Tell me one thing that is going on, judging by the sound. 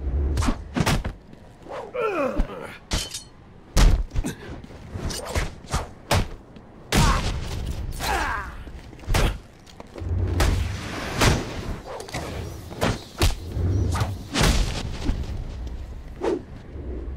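Punches and kicks land with heavy thuds in a fast brawl.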